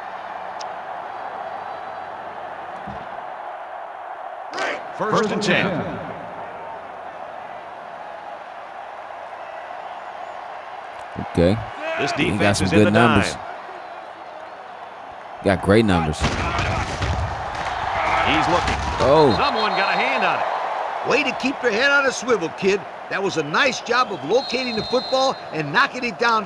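A stadium crowd roars steadily, swelling into a cheer.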